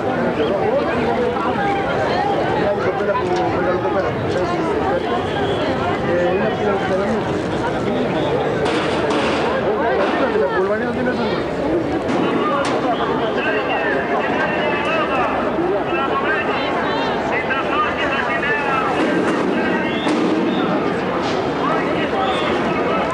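A large outdoor crowd of men and women chatters all around.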